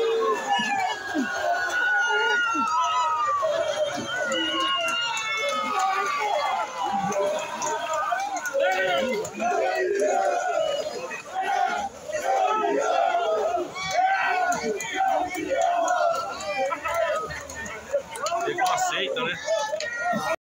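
Water splashes as players scramble in a pool.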